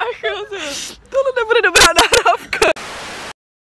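A young woman talks excitedly up close.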